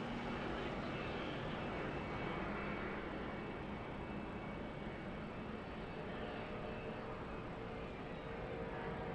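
Wind and road noise rush steadily past.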